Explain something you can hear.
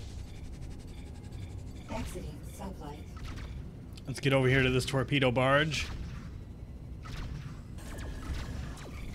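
A spaceship's engines roar steadily.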